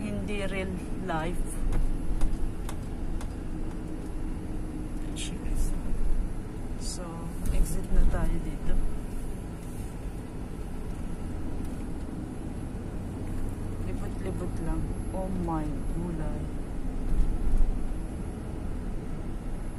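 A car engine hums steadily from inside a moving car.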